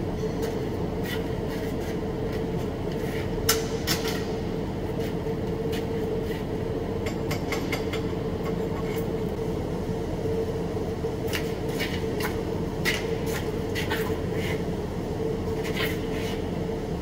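Metal parts clink and tap.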